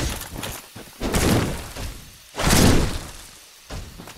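A sword clangs loudly against metal armour.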